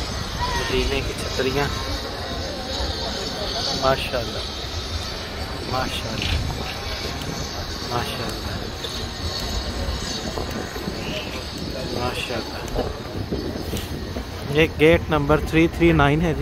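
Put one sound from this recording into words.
A crowd murmurs and talks outdoors.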